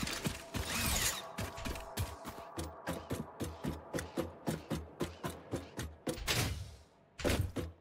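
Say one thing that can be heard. Boots clang rhythmically on metal ladder rungs.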